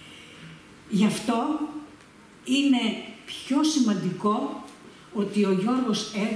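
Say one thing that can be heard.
An elderly woman reads aloud calmly into a microphone.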